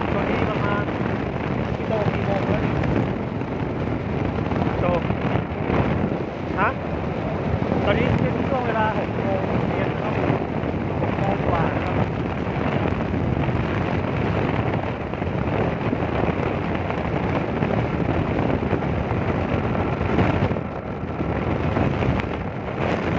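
A vehicle rumbles steadily along a road.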